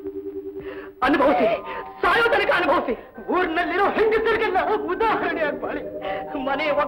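A woman sings a gentle song.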